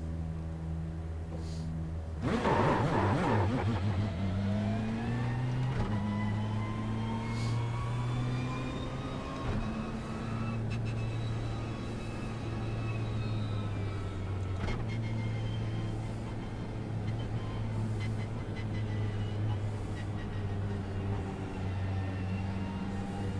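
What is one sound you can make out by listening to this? A racing car engine drones loudly, its pitch rising and falling as it shifts gears.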